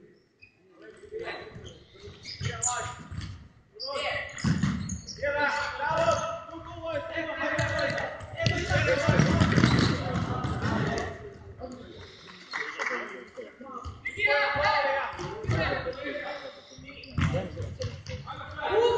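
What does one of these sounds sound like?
Young players shout to each other in an echoing hall.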